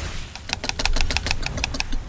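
Fire roars in a burst.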